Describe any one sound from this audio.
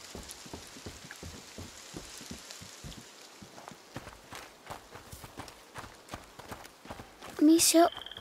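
Footsteps thud on wooden planks and then on a dirt path.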